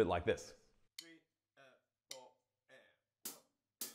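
Drumsticks strike drums in slow, single hits.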